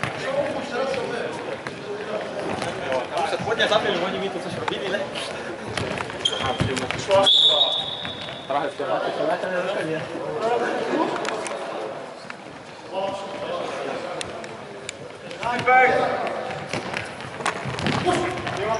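A ball thuds as it is kicked on a hard floor in an echoing hall.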